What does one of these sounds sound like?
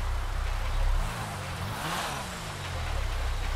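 A sports car engine revs briefly.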